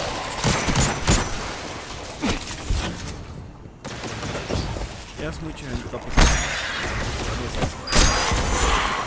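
A sniper rifle fires with a sharp crack.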